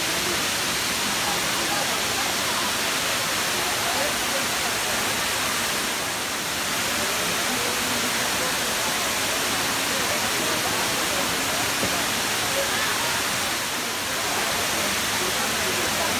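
A large waterfall roars as it plunges into a pool outdoors.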